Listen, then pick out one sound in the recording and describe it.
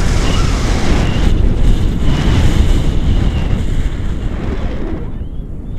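Wind rushes and buffets loudly against a microphone high in the open air.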